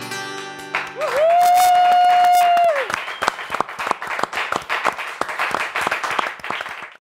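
A small group of people claps.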